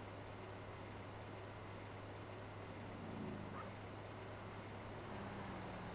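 A car engine hums steadily as a car drives fast.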